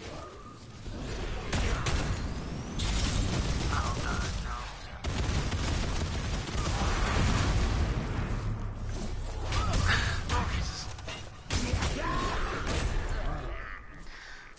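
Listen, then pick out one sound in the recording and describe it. Explosions boom and crackle in a game battle.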